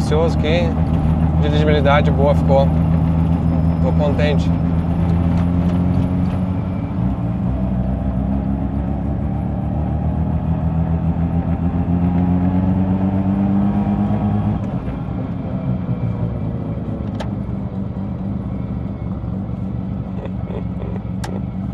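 A car engine hums and revs steadily up close.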